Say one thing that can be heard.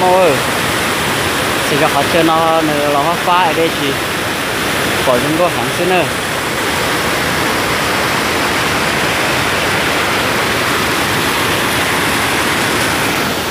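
Water rushes and splashes loudly over rocks.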